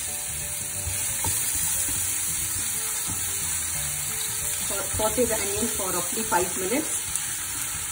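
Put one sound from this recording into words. A spatula scrapes and stirs onions in a pan.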